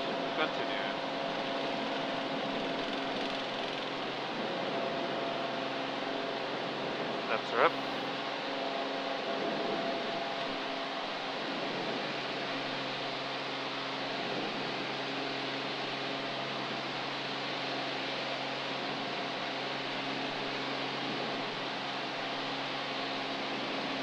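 A small propeller plane's engine drones steadily up close.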